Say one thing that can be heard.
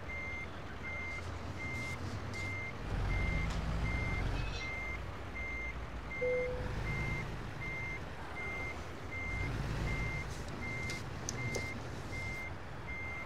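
A reversing alarm beeps steadily and rapidly.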